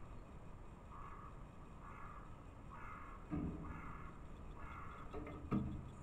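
A small bird chirps close by.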